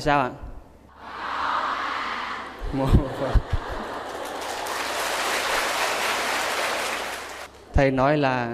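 A large crowd laughs.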